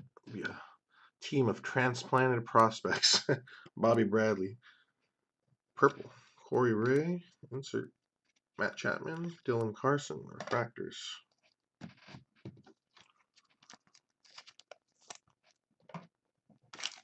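Trading cards shuffle and flick against each other in hands.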